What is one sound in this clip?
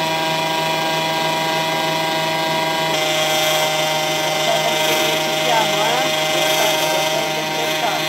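An electric mixer whirs steadily, beating a thick batter.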